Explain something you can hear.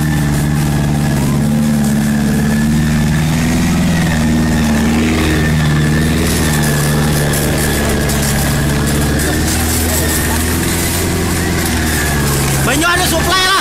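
Water sprays from a hose with a hiss.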